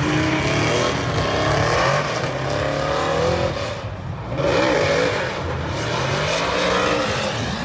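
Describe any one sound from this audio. A race car engine roars and revs in the distance.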